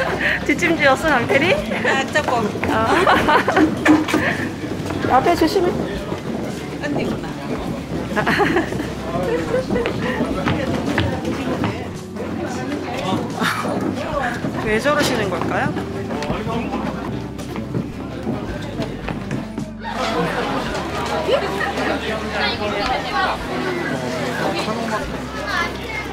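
A crowd murmurs and talks outdoors.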